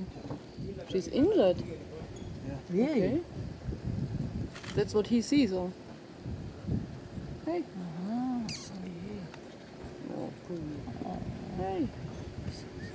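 A leopard makes soft, short mewing calls close by.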